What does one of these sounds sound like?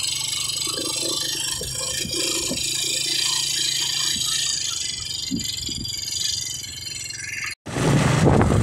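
A motorcycle engine idles with a low steady hum.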